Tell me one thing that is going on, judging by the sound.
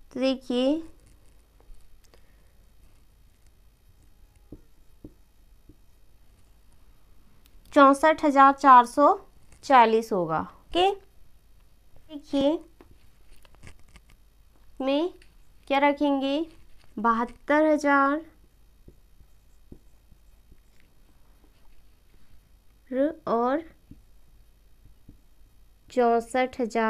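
A young woman speaks calmly and clearly, close by, in short bursts with pauses.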